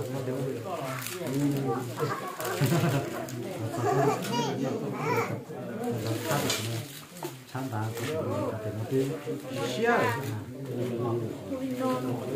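A knife chops through meat and bone on a board.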